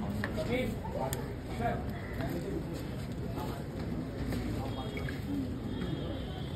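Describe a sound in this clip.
A crowd of men and women murmur and talk nearby.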